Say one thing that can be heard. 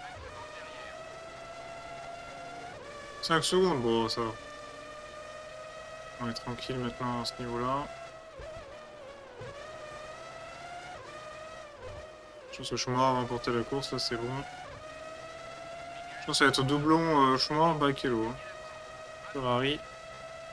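A racing car engine whines at high revs, rising and falling in pitch as gears change.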